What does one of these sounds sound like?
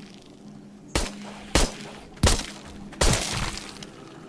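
A pistol fires several sharp, loud shots.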